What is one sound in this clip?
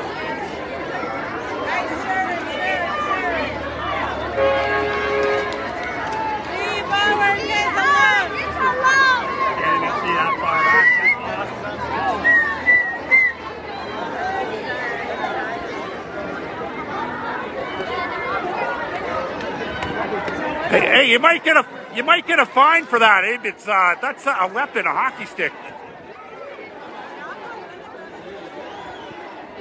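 A large outdoor crowd chatters and shouts all around.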